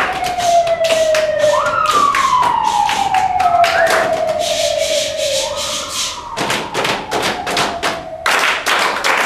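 A group of children sing sliding, wordless tones up close.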